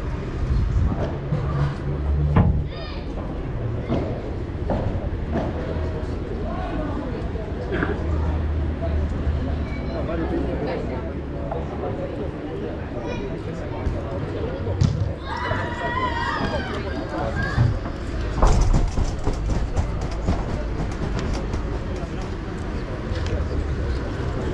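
Players call out to each other now and then.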